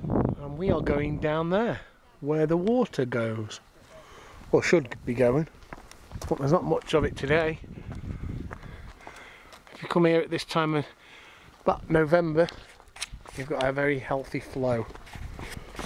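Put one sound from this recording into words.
A man talks calmly close by, in short phrases.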